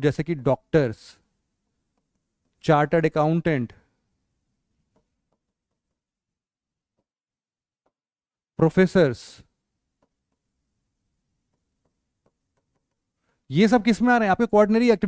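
A man speaks calmly into a close microphone, in short bursts with long pauses.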